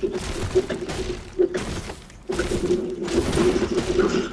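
A game character strikes blocks with a tool in sharp, repeated thuds.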